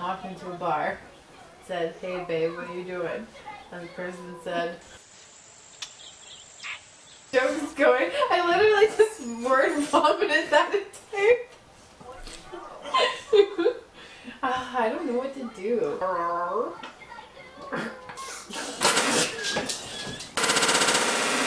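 Two young women talk with each other up close.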